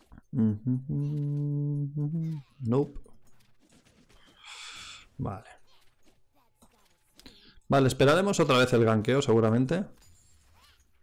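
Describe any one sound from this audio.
A young man talks animatedly into a microphone, close by, sometimes drawing out his voice.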